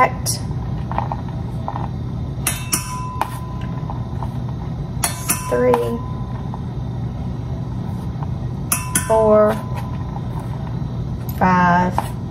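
A metal spoon clinks and scrapes against a tin.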